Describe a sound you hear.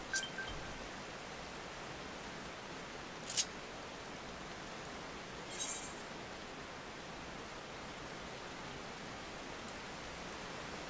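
Water rushes steadily from a waterfall.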